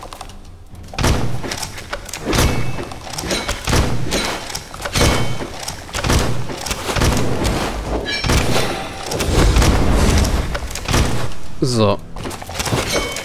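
Blades clash and strike in a fast fight.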